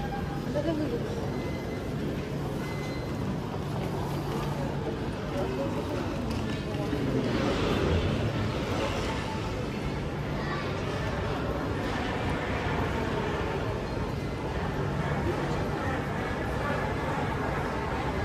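A busy indoor hall hums with distant crowd chatter.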